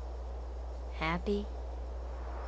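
A young boy asks a short question.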